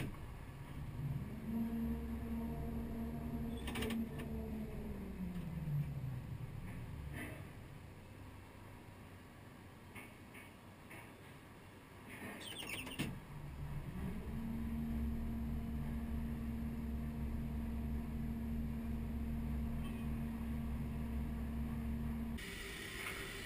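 An electric crane motor hums steadily, rising and falling in pitch as it speeds up and slows down.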